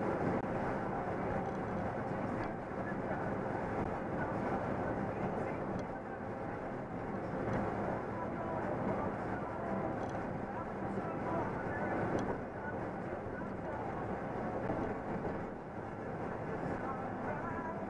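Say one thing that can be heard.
Tyres roar steadily on a highway.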